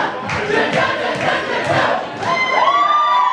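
A crowd of young people cheers and shouts together.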